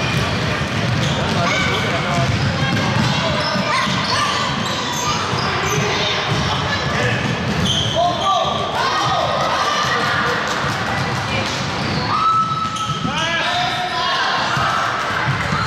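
Young children shout and call out to each other.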